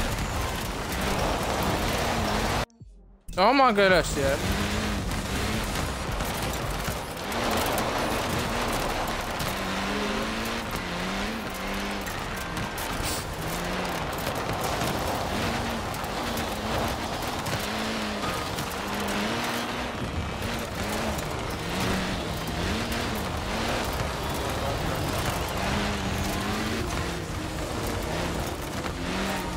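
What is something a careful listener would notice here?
Tyres crunch and skid on loose gravel and dirt.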